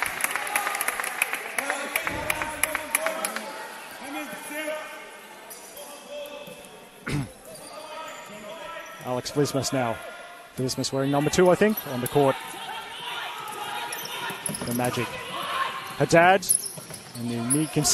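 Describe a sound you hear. A crowd of spectators murmurs in the background.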